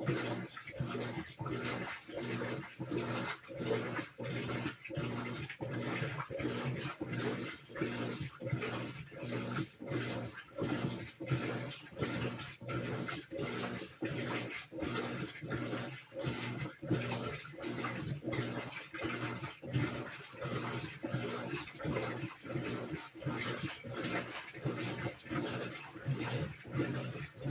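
A top-load washing machine's motor hums.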